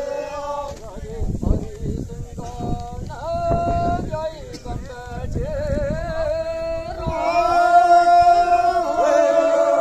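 A group of men sing together in a chorus.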